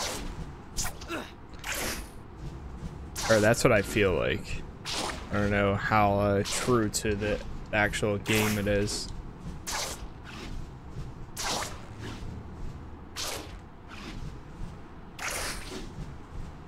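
Web-slinging whooshes sweep by again and again.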